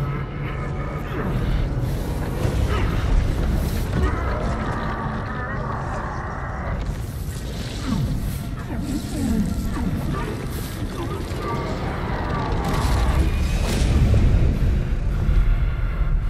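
Heavy rock grinds and crashes as a giant creature moves.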